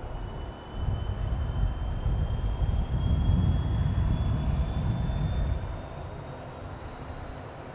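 A helicopter's rotor blades whoosh and thump, louder in the middle and then easing off.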